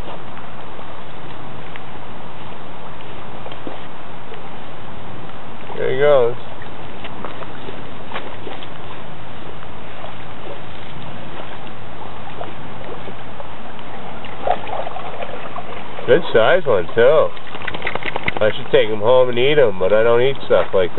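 Raindrops patter softly on shallow water.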